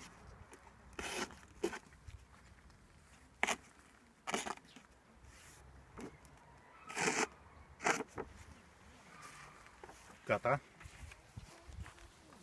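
A paper target rustles as it is handled.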